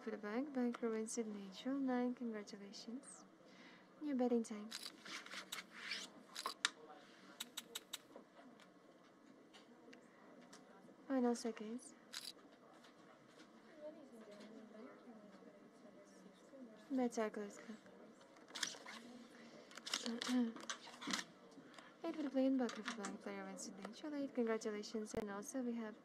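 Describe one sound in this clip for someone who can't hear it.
Playing cards slide and snap on a table.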